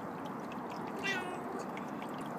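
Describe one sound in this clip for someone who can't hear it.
A cat meows briefly, very close.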